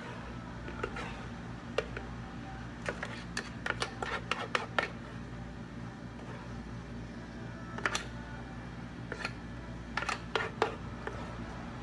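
Crushed ice slush is poured from a blender jug into plastic cups.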